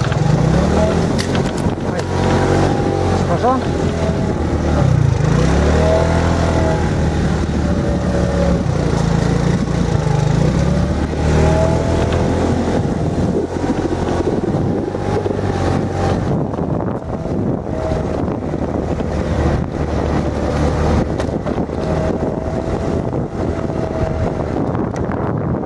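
A motorbike engine hums and revs as the bike rides along a dirt track.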